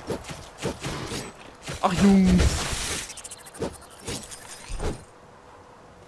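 A sword slashes and strikes with sharp hits.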